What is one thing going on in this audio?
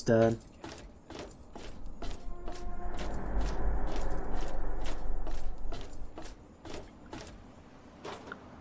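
Footsteps clank on a metal walkway at a steady pace.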